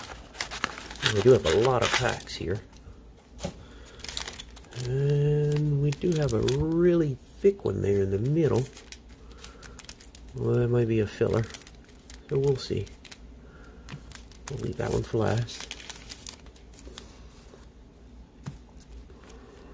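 Plastic card packs rustle and crinkle as they are handled.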